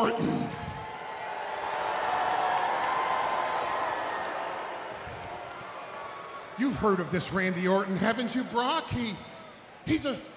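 A middle-aged man speaks loudly and forcefully into a microphone, heard through loudspeakers in a large arena.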